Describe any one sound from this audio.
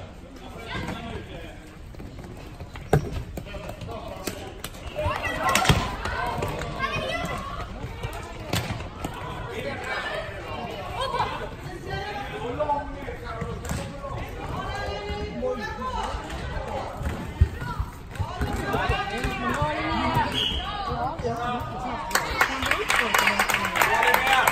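Plastic sticks click and clack against a ball on a hard floor, echoing in a large hall.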